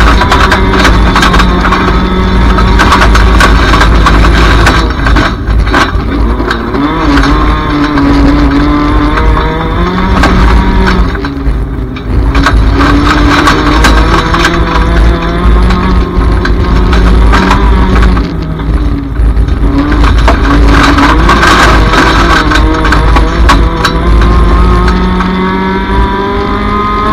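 Tyres crunch and skid on loose dirt.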